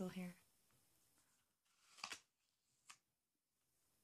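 A young woman bites into a crunchy apple.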